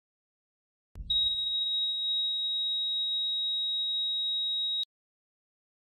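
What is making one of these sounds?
A heart monitor sounds one long, unbroken tone.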